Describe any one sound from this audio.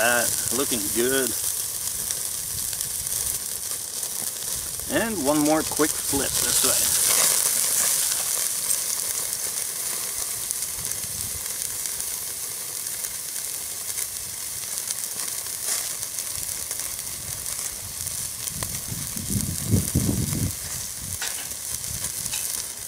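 A charcoal fire crackles softly.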